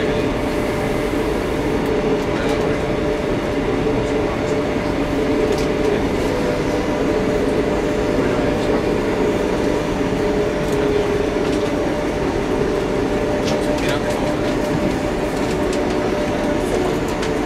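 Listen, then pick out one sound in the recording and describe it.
A train rumbles and hums steadily along the tracks.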